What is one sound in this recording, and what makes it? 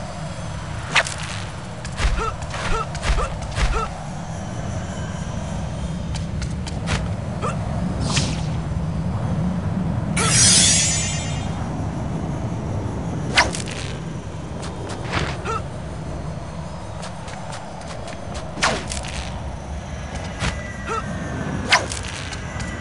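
Sharp web-shooting snaps ring out again and again.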